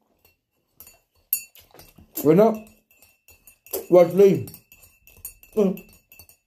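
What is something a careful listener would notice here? A spoon clinks against a mug as it stirs.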